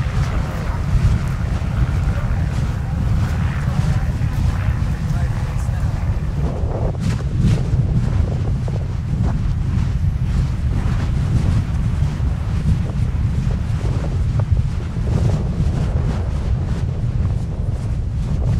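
Molten lava crackles and hisses.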